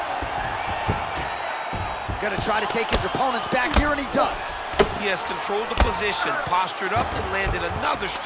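Punches thud against a body in quick, heavy blows.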